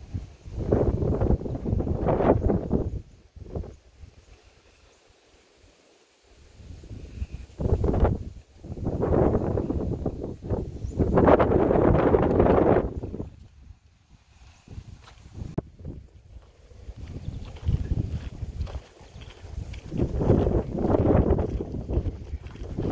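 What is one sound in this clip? Wind gusts roar across the microphone outdoors, coming and going.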